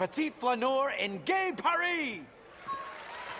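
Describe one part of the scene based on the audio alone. A man announces loudly and theatrically in a large hall.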